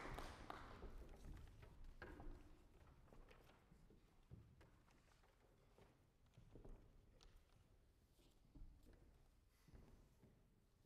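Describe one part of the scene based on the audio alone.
Musicians shift about and handle their instruments.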